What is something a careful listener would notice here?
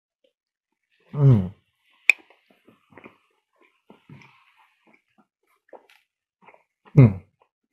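A man chews food with his mouth closed.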